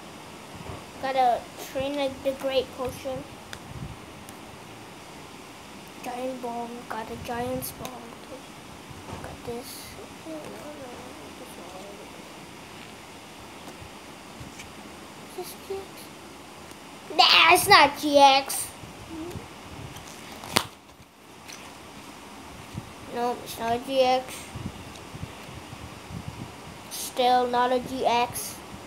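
A boy talks close by with animation.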